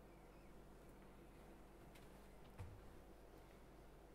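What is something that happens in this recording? Footsteps walk across a carpeted floor.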